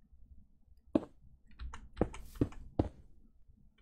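A block is placed with a short, soft thud, several times in quick succession.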